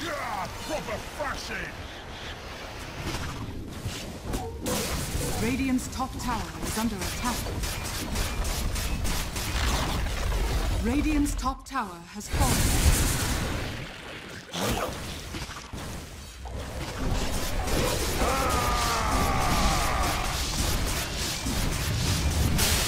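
Spells crackle and blast during a fight in a video game.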